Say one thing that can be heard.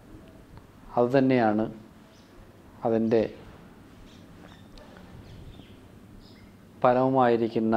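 A middle-aged man speaks calmly into a close microphone, in short bursts with pauses.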